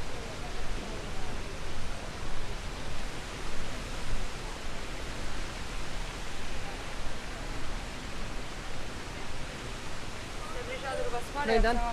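A steady wind blows across an open outdoor space.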